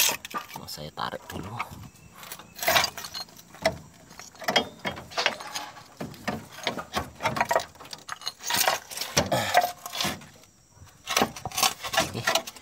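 Loose rubble crunches and scrapes under an animal's feet.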